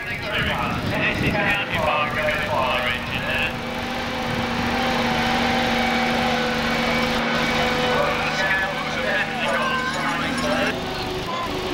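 A heavy engine rumbles steadily as a large truck drives slowly past.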